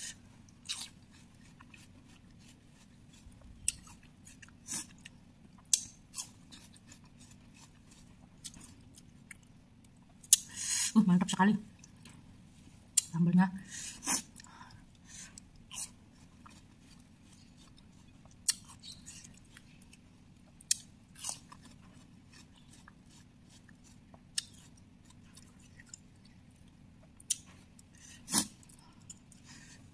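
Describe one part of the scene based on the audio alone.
Fingers dab wet fruit slices into a thick sauce, with soft squelching and clicking.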